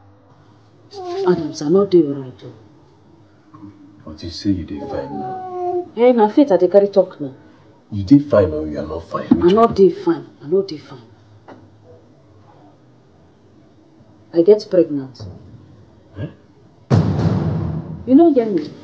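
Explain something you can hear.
A young man speaks quietly, close by.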